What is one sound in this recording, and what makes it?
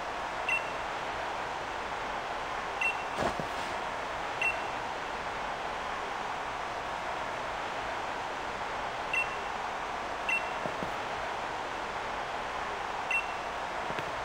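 Short electronic beeps chime now and then.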